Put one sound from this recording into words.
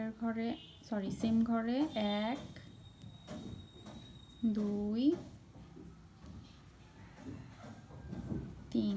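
A crochet hook softly pulls yarn through loops.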